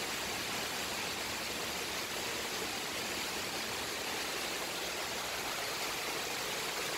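Strong wind gusts through trees, rustling leaves.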